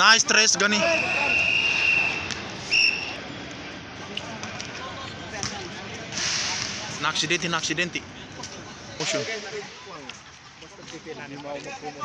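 Young men shout and call out nearby outdoors.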